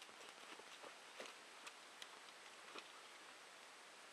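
Footsteps crunch through dry leaves and twigs on a slope.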